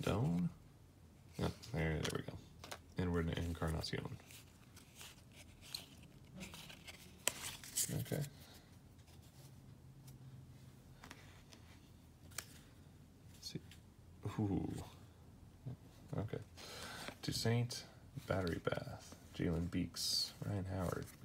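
Stiff paper cards slide and tap against each other as a hand flips through them.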